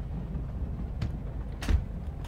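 A metal door handle clunks as it is grabbed.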